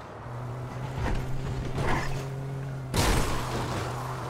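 A car thumps and bumps over rough ground.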